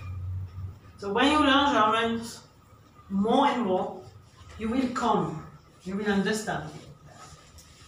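A middle-aged woman speaks calmly and clearly into a nearby microphone, in short phrases with pauses.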